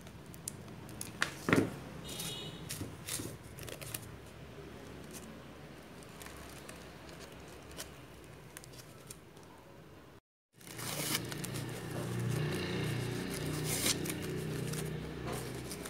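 Crepe paper leaves rustle and crinkle in hands.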